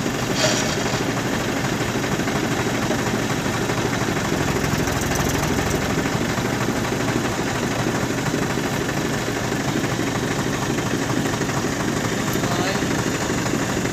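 A diesel farm tractor idles close by.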